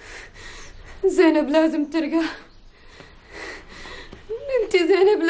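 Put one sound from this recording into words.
A woman speaks close by in a distressed, pleading voice.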